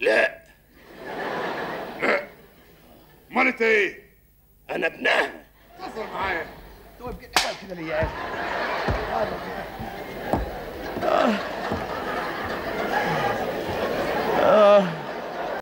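A middle-aged man speaks forcefully and angrily.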